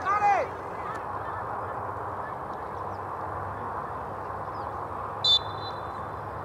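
A referee's whistle blows short and sharp.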